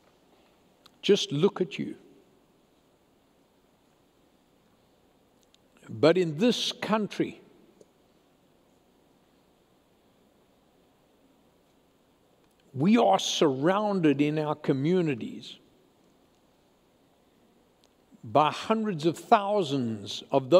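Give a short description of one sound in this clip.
An elderly man speaks with emphasis into a microphone, in short bursts with long pauses.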